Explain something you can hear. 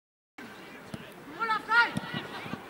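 A football is kicked hard on a grass pitch.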